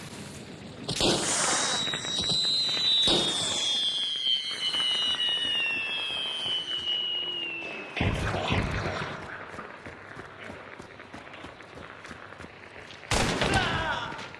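Gunshots bang loudly and echo.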